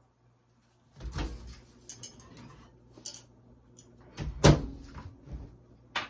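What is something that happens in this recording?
A microwave door clicks open and thumps shut.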